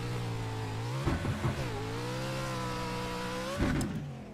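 A racing car bumps and thuds over rough dirt.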